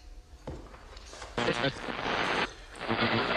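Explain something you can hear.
A man slurps a hot drink.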